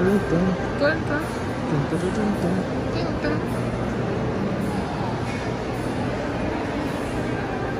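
Distant voices of men and women murmur in a large echoing hall.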